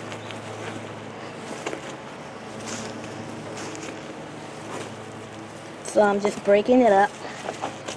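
Gloved hands dig and crumble loose potting soil with a soft rustle.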